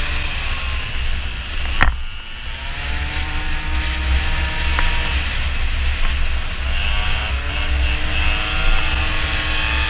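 Small motorbike engines whine as they ride along.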